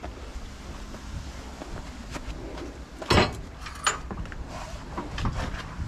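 A hose clatters against a metal reel as it is handled.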